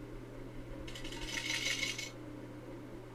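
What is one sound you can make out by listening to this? Coins jingle and clatter as they fall.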